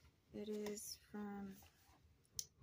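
A woman speaks briefly and softly, close by.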